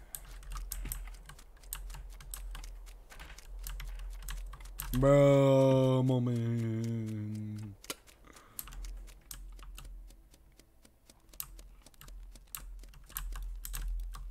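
Small footsteps patter steadily.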